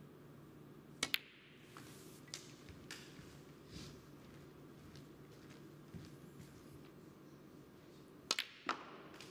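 A cue tip sharply strikes a ball.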